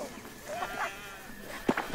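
Sheep bleat nearby.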